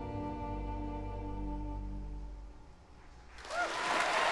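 A band plays music.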